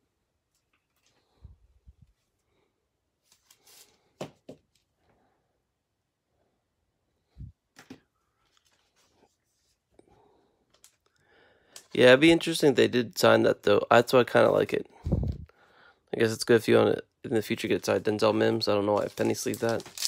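Plastic card sleeves rustle and click as cards are handled.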